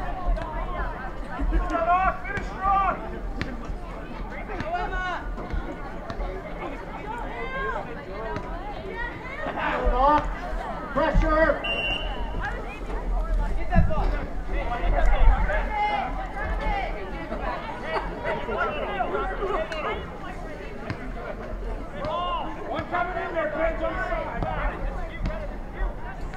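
A crowd of spectators talks and calls out nearby, outdoors.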